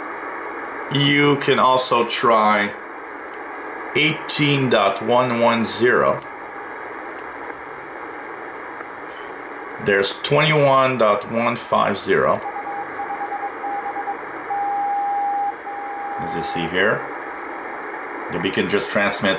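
A voice speaks through a radio loudspeaker, broken up by static.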